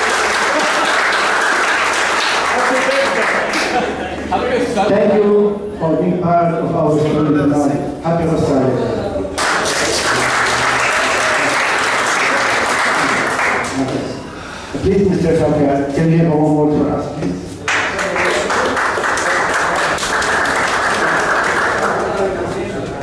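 An audience claps and applauds loudly.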